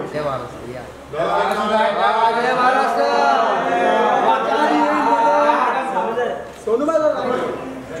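A man talks to people nearby.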